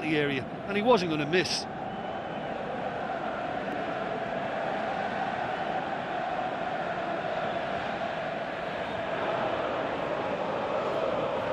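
A stadium crowd murmurs and roars steadily in the distance.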